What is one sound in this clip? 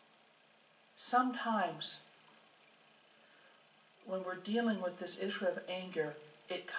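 A woman speaks calmly into a microphone, heard through a loudspeaker.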